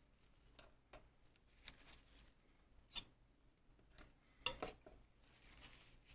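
A paintbrush taps and scrapes softly against a wooden palette.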